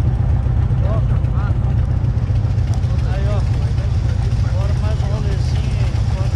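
A motorcycle engine idles with a deep, steady rumble.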